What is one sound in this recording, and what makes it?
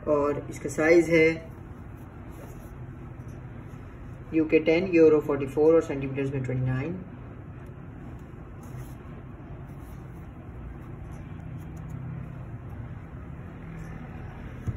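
A canvas shoe rustles softly as it is turned in the hands.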